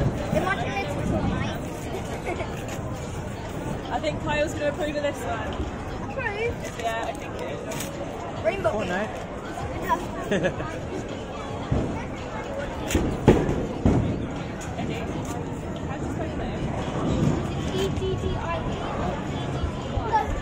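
Young children talk and exclaim excitedly nearby.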